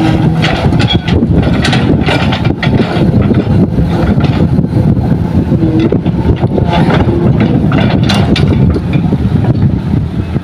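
Rocks and dirt clatter and thud into a metal truck bed.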